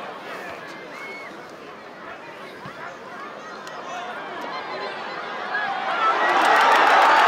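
A stadium crowd murmurs and chatters in the stands.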